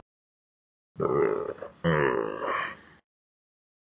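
A man groans close up.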